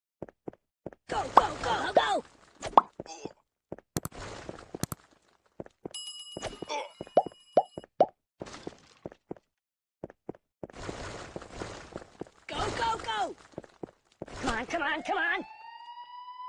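Brick walls crash and crumble into rubble.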